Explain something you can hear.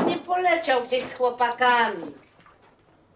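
A woman speaks loudly nearby.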